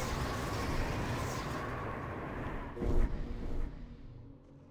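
Fire roars and crackles in a burst of flame.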